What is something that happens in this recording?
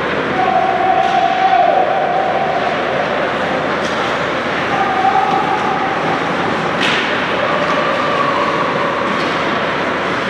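Hockey sticks clack against the ice and puck now and then.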